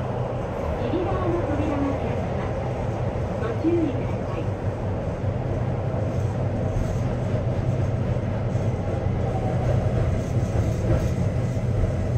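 A train rumbles and rattles steadily along tracks through a tunnel.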